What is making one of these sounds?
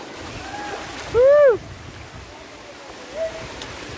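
A woman's feet splash as she wades through a shallow stream.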